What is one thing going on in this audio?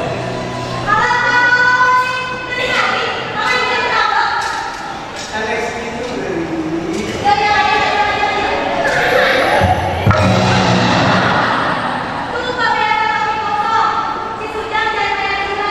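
A young man speaks and sings in a theatrical voice.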